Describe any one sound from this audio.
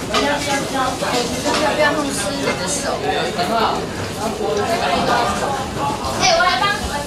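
A middle-aged woman speaks calmly and steadily nearby, explaining.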